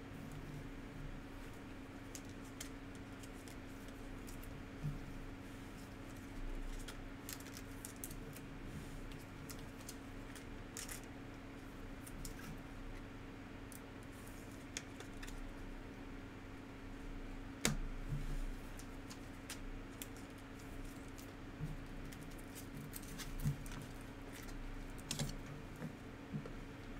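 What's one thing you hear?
Plastic card sleeves and wrappers rustle and crinkle between fingers.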